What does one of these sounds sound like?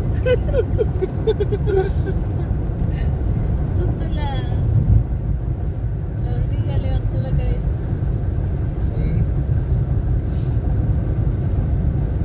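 A car drives along a road with a steady low rumble.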